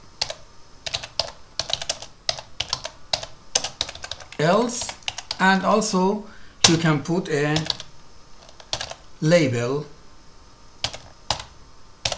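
Keys click as someone types on a keyboard.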